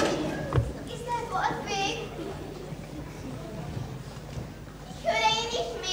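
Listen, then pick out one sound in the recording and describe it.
A young woman calls out from a stage, heard from a distance in a large room.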